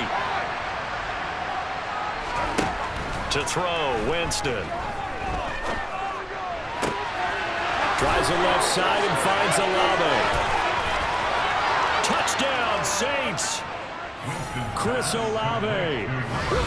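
A large stadium crowd roars and cheers, swelling louder midway.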